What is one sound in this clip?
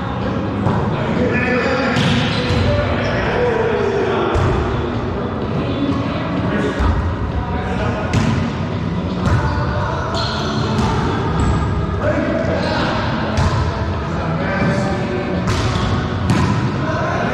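A volleyball thumps off players' hands and echoes around a bare hall.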